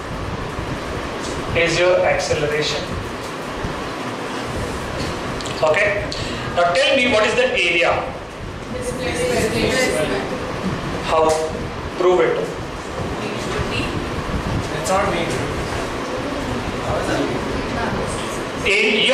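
A man talks calmly through a clip-on microphone, explaining at a steady pace.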